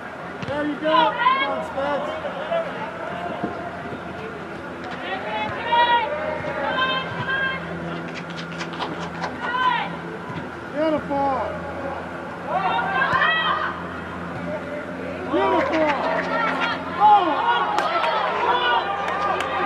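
Young men shout to each other across a large echoing indoor hall.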